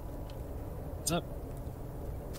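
A dog barks once nearby.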